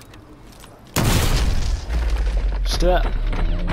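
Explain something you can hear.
A loud explosion bursts and booms.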